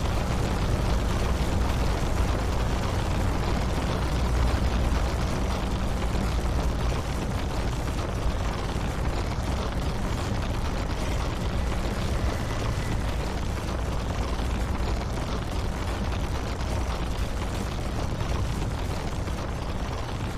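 A large vehicle's engine rumbles steadily nearby.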